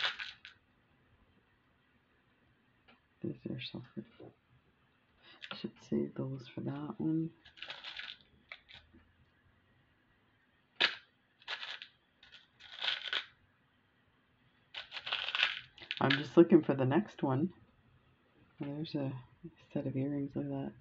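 Small metal jewellery parts click and tick softly as fingers handle them.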